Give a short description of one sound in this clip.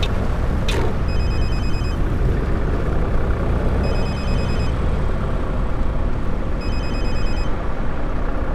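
A turn signal ticks in short bursts.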